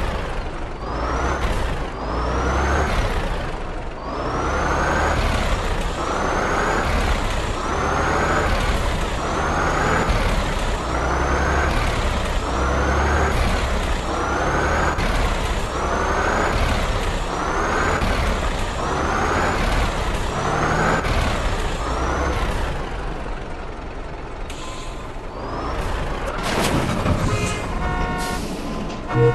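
A heavy truck engine rumbles low and steady.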